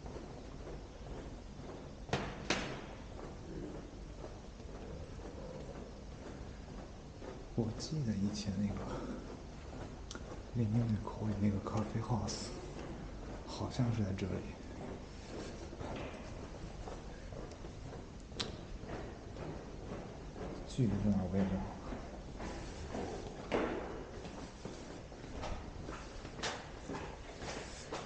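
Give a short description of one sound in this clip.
Footsteps tap on a hard floor in an echoing corridor.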